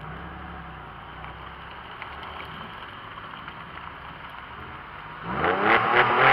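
A car engine idles quietly.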